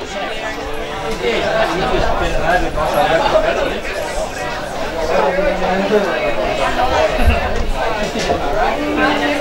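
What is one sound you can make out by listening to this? Men shout and call to each other across an open field outdoors.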